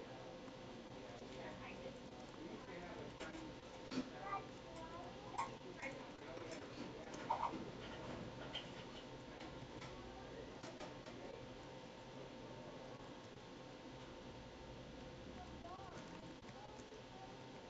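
Keys clack as someone types on a keyboard.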